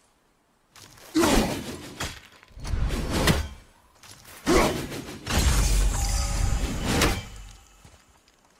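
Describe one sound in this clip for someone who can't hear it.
An axe strikes with a heavy thud.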